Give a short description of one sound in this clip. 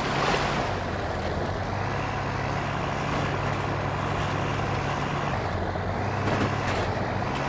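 An engine hums and revs steadily.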